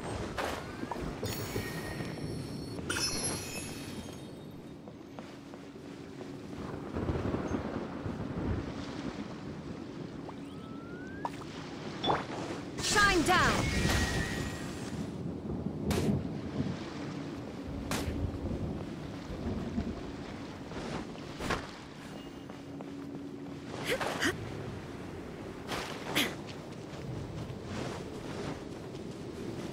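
Magic spells crackle and whoosh in short bursts.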